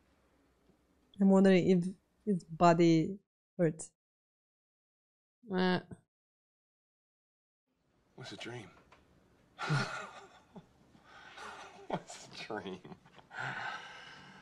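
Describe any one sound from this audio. A second young woman talks and laughs into a close microphone.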